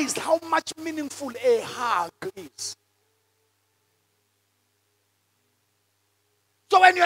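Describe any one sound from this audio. A man speaks with passion into a microphone, heard through a loudspeaker.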